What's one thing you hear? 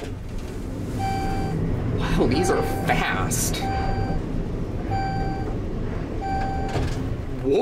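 A short electronic beep sounds at each floor.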